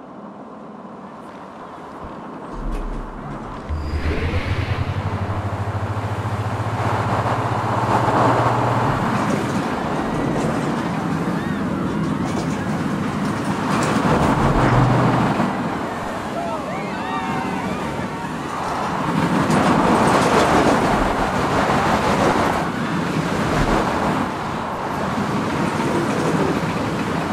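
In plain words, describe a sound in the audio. A roller coaster train rattles and roars along its track.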